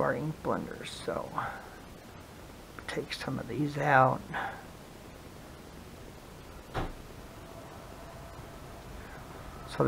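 Fabric pieces rustle softly.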